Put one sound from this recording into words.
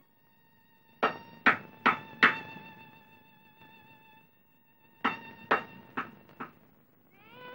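A girl knocks on a wooden door.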